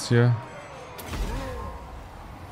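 A magic blast bursts with a deep boom.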